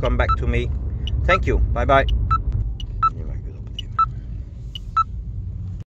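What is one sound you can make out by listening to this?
An electronic device beeps in short, regular high tones.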